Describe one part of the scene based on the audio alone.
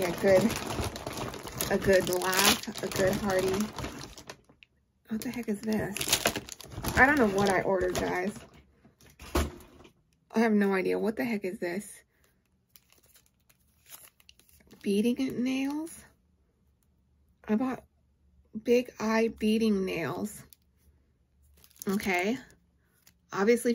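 A woman talks animatedly and close up.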